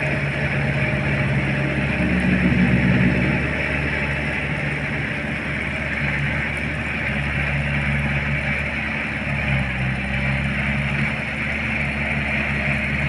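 A rotary tiller churns through wet soil.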